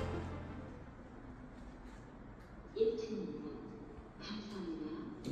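An elevator hums faintly as it moves through its shaft.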